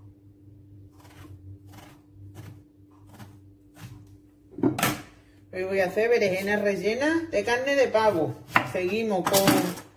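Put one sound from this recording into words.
A kitchen knife cuts through eggplant and taps on a plastic cutting board.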